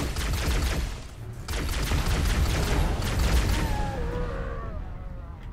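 Gunfire bursts loudly from a weapon.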